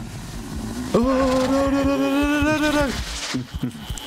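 A man cries out in a long, drawn-out wail.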